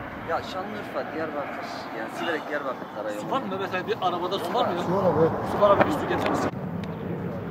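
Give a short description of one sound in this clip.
Several men talk over one another nearby, outdoors.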